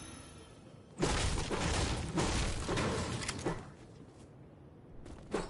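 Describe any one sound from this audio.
A pickaxe strikes and smashes wood with loud bursts.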